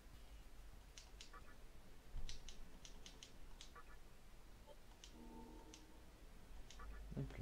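Short electronic menu beeps sound now and then.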